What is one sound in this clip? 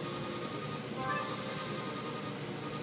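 A bright game chime rings out for a level-up.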